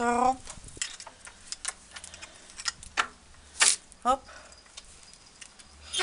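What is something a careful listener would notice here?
A metal gate latch rattles and clicks.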